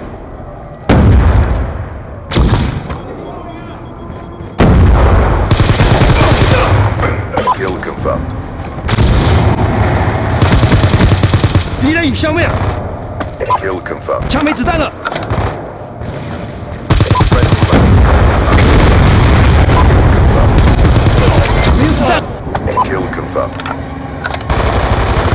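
Rapid gunfire rattles in loud bursts.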